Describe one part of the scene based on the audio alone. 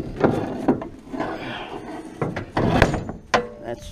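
A plastic bin lid slams shut with a hollow thud.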